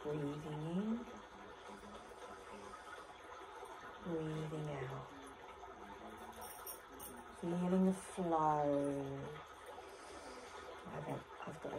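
A woman speaks up close, calmly giving instructions.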